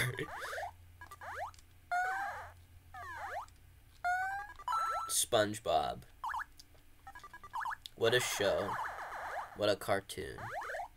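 Retro video game sound effects chirp and bleep with quick sliding tones.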